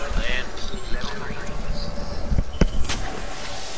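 A shield battery charges with an electronic whir.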